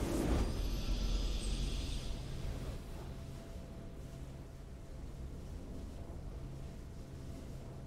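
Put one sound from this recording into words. A short victory fanfare plays softly in a video game.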